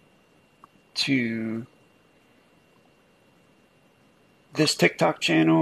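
A man speaks into a close microphone with animation.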